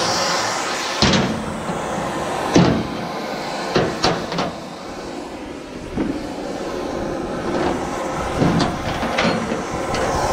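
Metal clanks sharply as it is struck.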